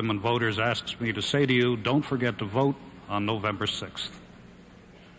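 An older man speaks calmly into a microphone.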